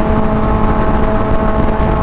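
A truck roars past close by.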